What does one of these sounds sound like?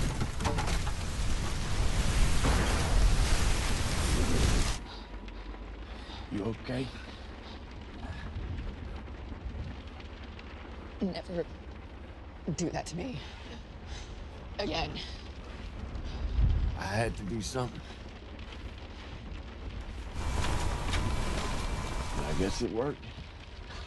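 A strong storm wind roars and howls outdoors.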